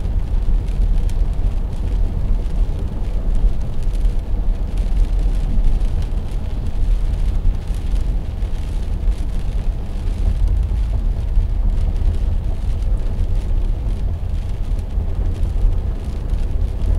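Raindrops tap on a windshield.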